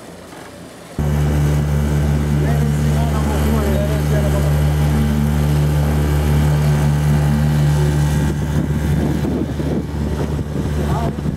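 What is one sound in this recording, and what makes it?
A motorboat engine drones steadily up close.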